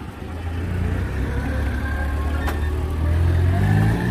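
A vehicle's bonnet clicks open.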